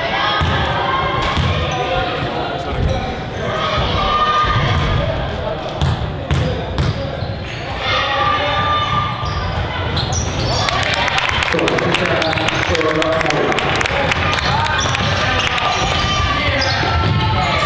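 Young girls shout and call out to each other across an echoing gym.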